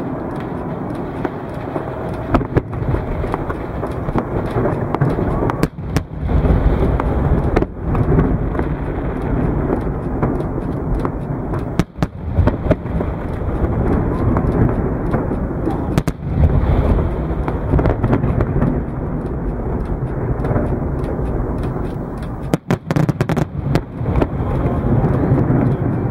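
Fireworks crackle and fizz.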